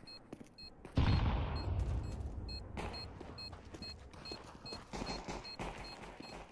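A smoke grenade hisses as it spreads smoke nearby.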